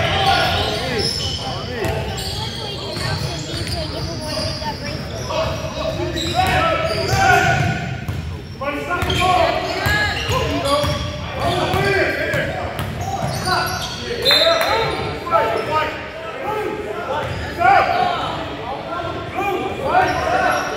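Men shout and call out to each other on the court.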